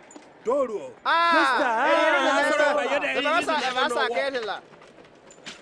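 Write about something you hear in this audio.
A group of men cheer and shout loudly.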